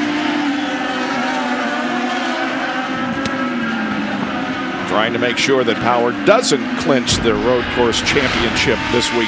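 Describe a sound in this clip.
A race car engine whines at high speed and its pitch slowly drops as it passes.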